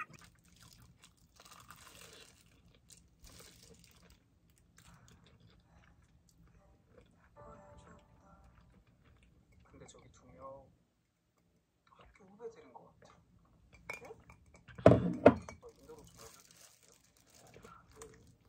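A woman chews food with soft, wet sounds close by.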